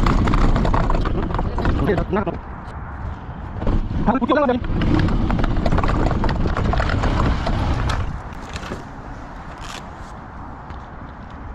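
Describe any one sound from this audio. A golf cart hums and rolls along with a low rumble.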